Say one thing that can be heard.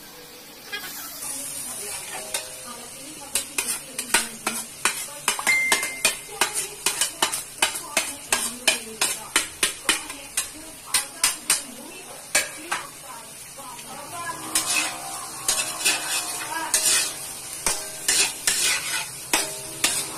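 Food sizzles in a hot wok.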